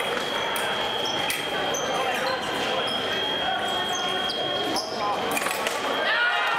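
Fencing blades clash with sharp metallic clicks.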